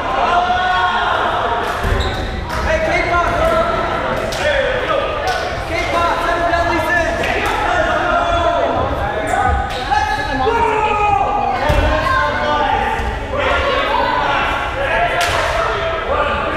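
Many young adults talk and shout in an echoing gym.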